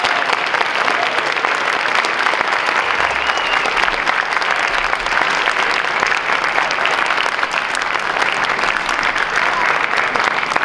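A school band plays loudly in a large hall.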